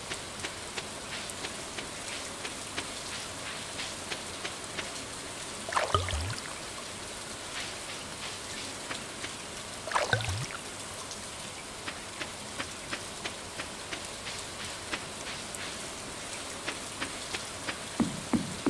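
Footsteps tap along at an even pace.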